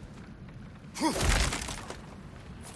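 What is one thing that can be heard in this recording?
A heavy chest lid thuds open.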